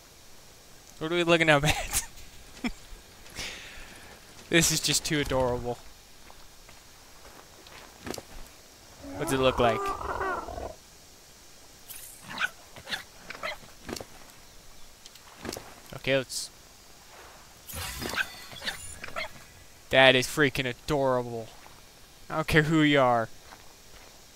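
An otter chirps and squeaks in short, high calls.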